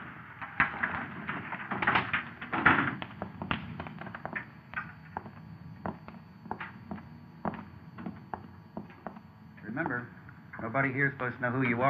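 Footsteps shuffle as men walk around the room.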